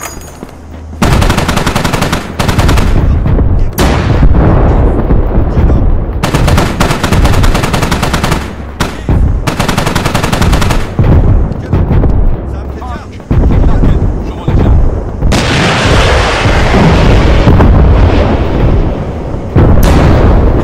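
A heavy machine gun fires in rapid, loud bursts.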